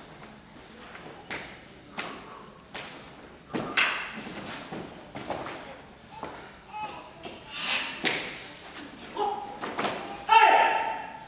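Feet thud and slide on a wooden floor in a large echoing hall.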